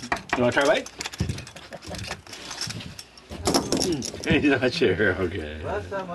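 Shells click and knock against a plastic crate.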